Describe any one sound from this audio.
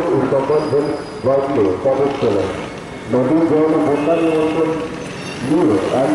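A group of men chant together.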